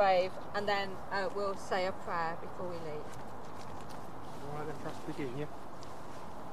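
A woman speaks calmly, reading aloud, close by outdoors.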